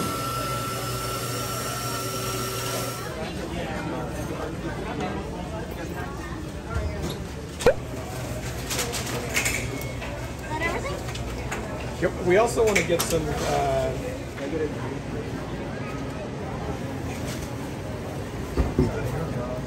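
A crowd of shoppers murmurs indoors.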